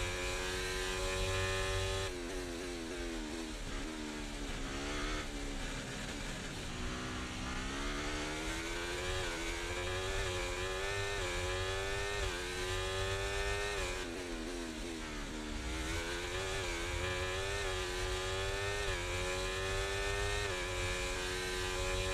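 A racing car engine screams, rising in pitch as it speeds up and dropping sharply as it brakes and shifts down.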